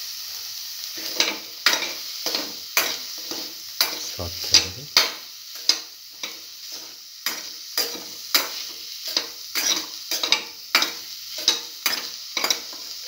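A metal spatula scrapes and clatters against a pan.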